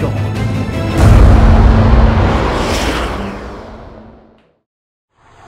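A car engine roars loudly as the car speeds past and fades away.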